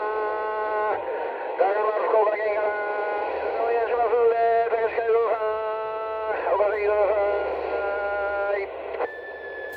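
A warbling, buzzy signal sounds through a radio receiver.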